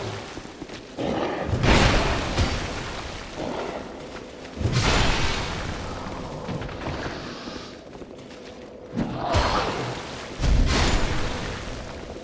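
Heavy sword blows whoosh and thud.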